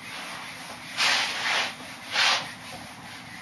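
An eraser rubs across a whiteboard in quick strokes.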